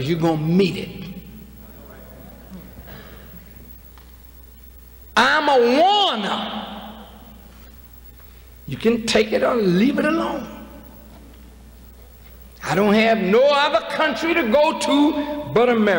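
A man speaks forcefully into a microphone in bursts, with long pauses, his voice echoing in a large hall.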